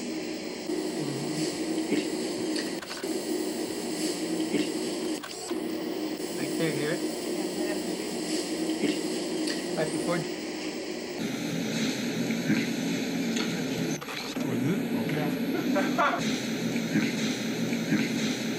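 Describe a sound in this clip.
A cassette player's buttons click as they are pressed.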